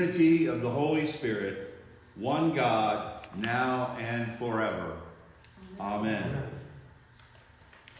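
A man speaks calmly and slowly in an echoing room.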